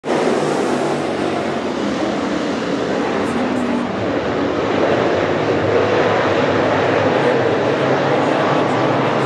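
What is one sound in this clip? Many race car engines roar loudly close by, with overlapping revving.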